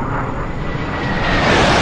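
A fighter jet's engine swells into a loud whoosh as it banks away.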